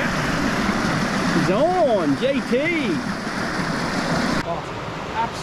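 Water rushes and splashes over rocks close by.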